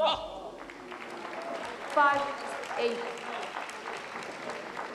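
A crowd of spectators claps and murmurs in a large echoing hall.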